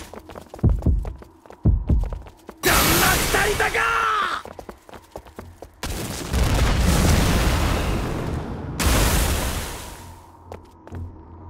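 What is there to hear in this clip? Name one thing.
Blades slash and strike with sharp hits.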